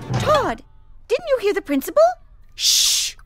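A girl shouts angrily.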